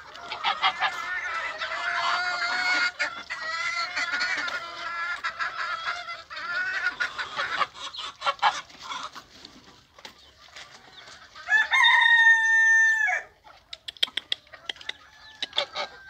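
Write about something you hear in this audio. Hens cluck softly nearby.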